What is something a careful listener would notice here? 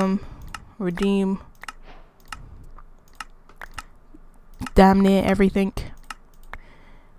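Short, sharp clicks sound now and then as menu items are selected.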